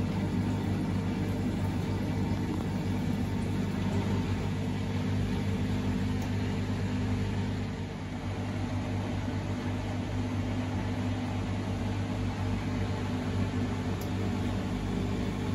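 Laundry tumbles softly inside a washing machine drum.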